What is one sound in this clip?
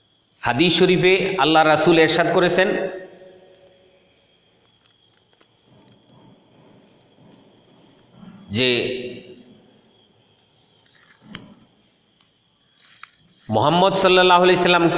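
A middle-aged man speaks calmly and close to the microphone, pausing between phrases.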